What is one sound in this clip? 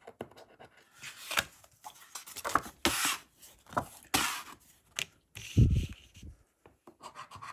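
A card flaps and rustles as it is handled.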